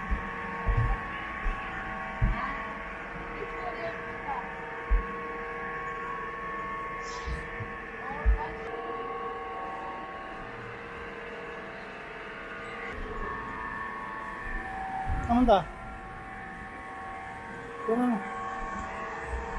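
A low machine hum drones steadily throughout.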